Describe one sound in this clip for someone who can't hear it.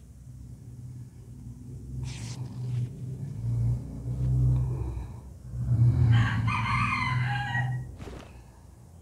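An off-road vehicle's engine drones as it drives past.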